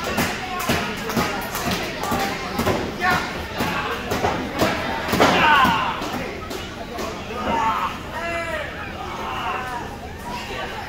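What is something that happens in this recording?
Wrestlers' bodies slap and thud against each other.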